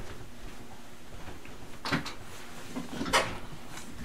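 A man sits down heavily in a chair.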